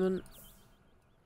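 A young woman speaks briefly and casually into a close microphone.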